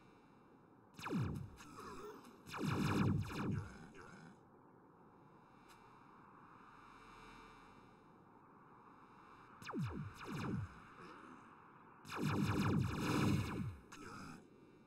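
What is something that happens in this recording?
Explosions boom in heavy bursts.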